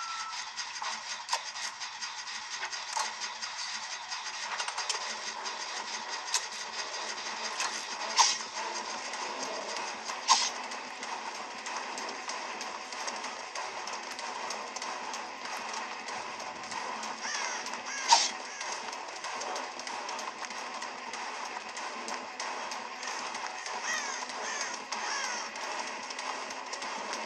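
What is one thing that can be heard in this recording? Game sound effects play from a handheld console's small speakers.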